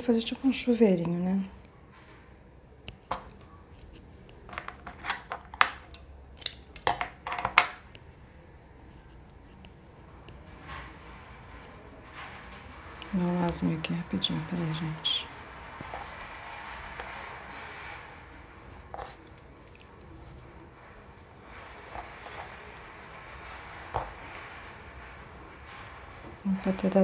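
Yarn rustles softly between fingers.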